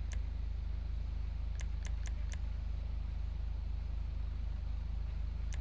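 Short electronic clicks tick now and then.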